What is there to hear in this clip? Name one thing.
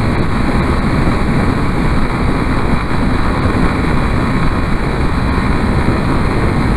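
A motorcycle engine hums steadily while riding at speed.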